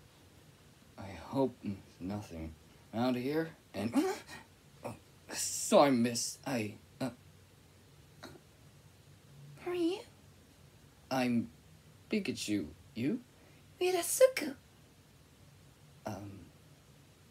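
A young woman speaks playfully close by, putting on character voices.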